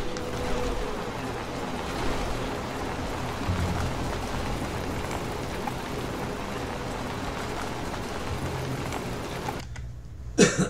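Footsteps thud steadily on pavement.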